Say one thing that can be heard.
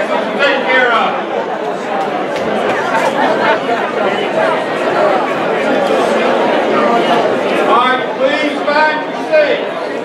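A man talks close by amid the chatter.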